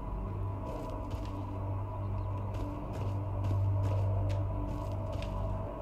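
Footsteps rustle through tall grass at a steady walking pace.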